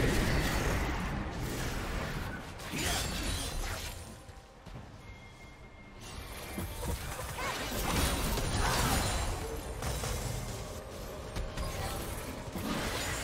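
Game spells and attacks crackle and clash.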